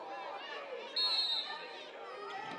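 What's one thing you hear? A referee blows a short, shrill whistle.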